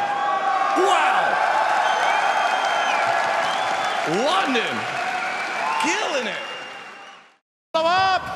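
A young man speaks with animation into a microphone over the crowd.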